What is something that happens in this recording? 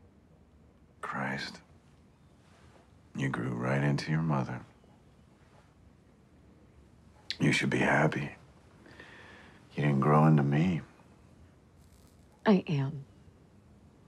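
A man speaks calmly and quietly, close by, in short phrases.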